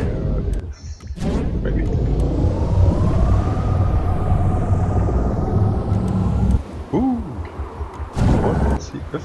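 Jet thrusters roar steadily as a craft flies.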